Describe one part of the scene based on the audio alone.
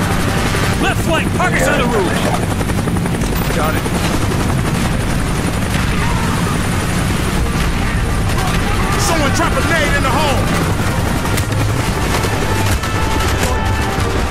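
Heavy gunfire rattles continuously.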